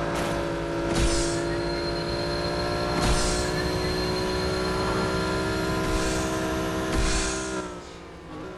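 Bursts of rushing air whoosh past as a car boosts.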